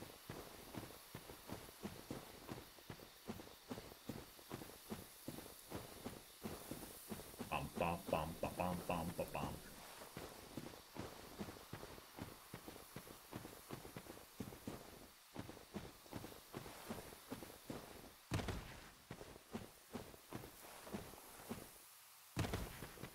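Armoured footsteps tread steadily on the ground.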